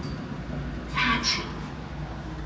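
An elevator button beeps when pressed.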